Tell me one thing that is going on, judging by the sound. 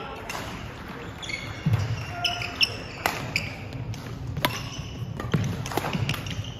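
Rackets strike a shuttlecock in a quick rally, echoing in a large hall.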